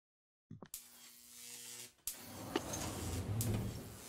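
A lever clicks as it is switched.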